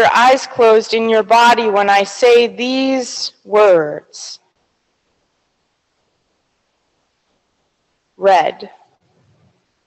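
A woman speaks into a microphone, her voice carried through a loudspeaker in a large echoing hall.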